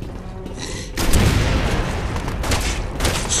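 A gunshot booms loudly and echoes.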